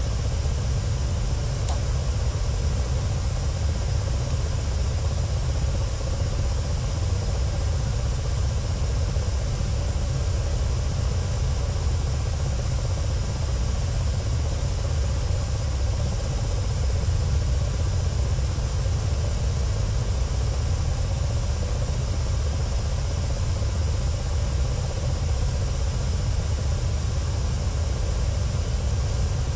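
A helicopter engine and rotor drone steadily from inside the cockpit.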